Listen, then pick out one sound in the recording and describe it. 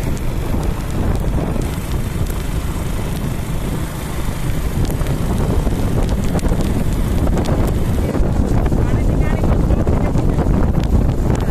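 Tyres hum on a road.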